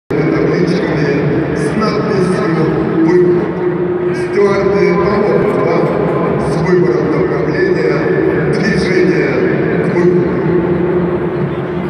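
A large crowd chatters and murmurs in an echoing open stadium.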